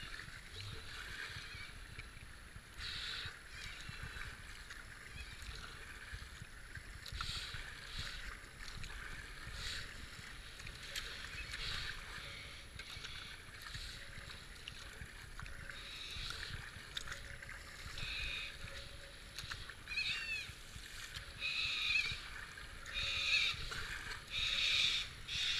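A kayak paddle splashes in the water with regular strokes.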